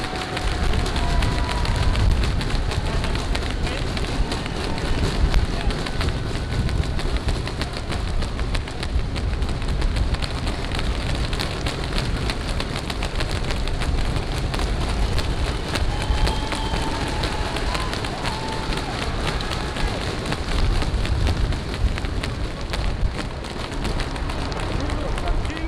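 Hands clap and bang on a roadside barrier.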